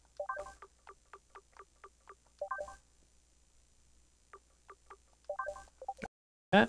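Short, pitched menu blips tick quickly as a selection moves from one choice to the next.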